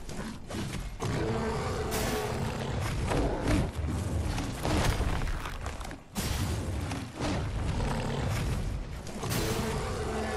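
A large creature roars and growls.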